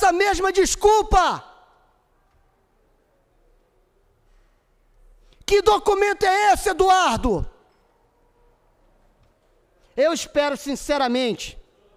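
A man speaks with animation into a microphone, in short bursts with pauses.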